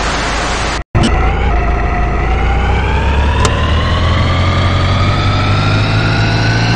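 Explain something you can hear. A motorboat engine hums and rises steadily in pitch as it speeds up.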